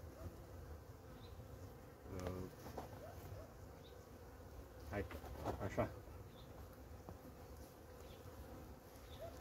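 Bees buzz steadily around a hive.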